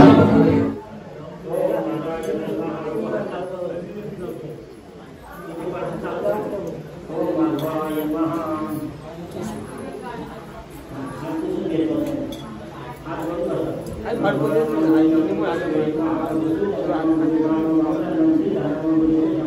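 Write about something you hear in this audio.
A man chants steadily through a microphone.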